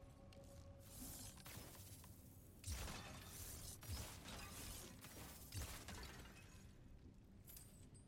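Weapons clash and swoosh in a fight.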